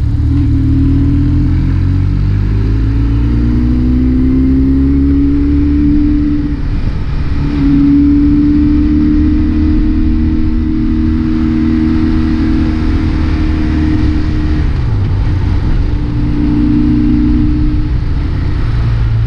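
A motorcycle engine hums and rises and falls in pitch as the rider changes speed.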